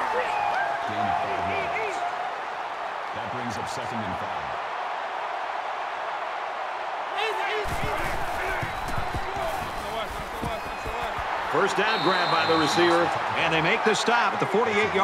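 A stadium crowd roars steadily, swelling louder toward the end.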